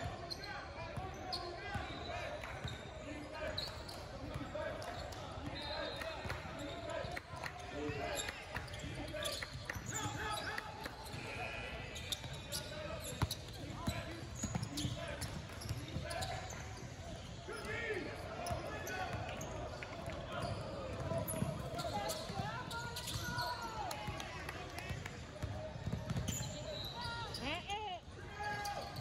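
Players and spectators call out and shout across a large echoing hall.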